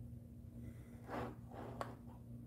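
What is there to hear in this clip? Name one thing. A young woman breathes out close by.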